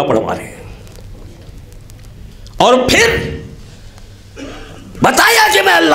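A man speaks with feeling through a microphone in an echoing hall.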